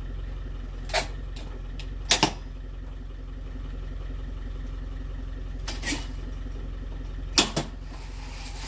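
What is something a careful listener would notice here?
Metal clanks sharply a few times.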